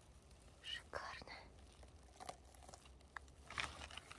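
A mushroom stem snaps as it is pulled from the ground.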